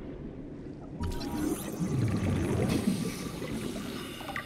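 A scanning device whirs with a soft electronic hum.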